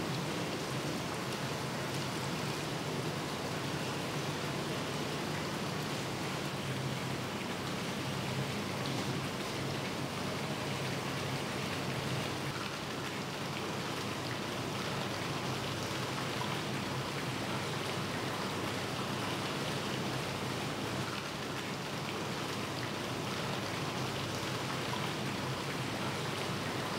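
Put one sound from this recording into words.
Water gurgles and bubbles steadily in tanks.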